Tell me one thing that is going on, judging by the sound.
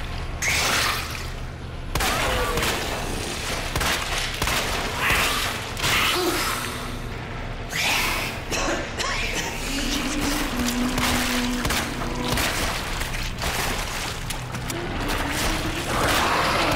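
A pistol fires several sharp shots that echo in a tunnel.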